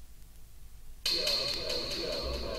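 Electronic dance music plays from a vinyl record.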